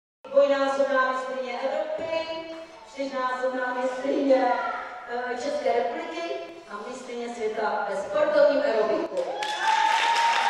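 A woman speaks with animation through a microphone in an echoing hall.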